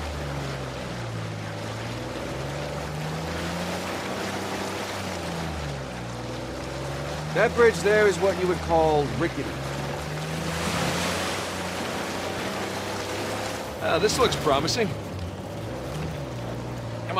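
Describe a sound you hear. A jeep engine hums and rises and falls in pitch as it drives over rough ground.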